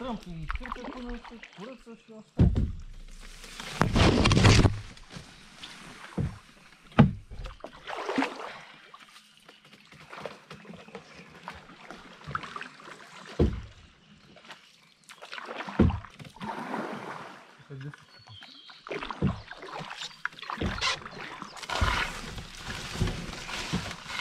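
Leafy branches brush and rustle against a boat.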